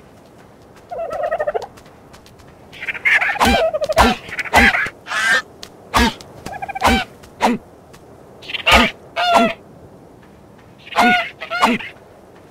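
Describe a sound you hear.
A bird squawks and cackles in sharp bursts.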